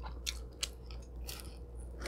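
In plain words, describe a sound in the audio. A young woman bites and chews crunchy food close to a microphone.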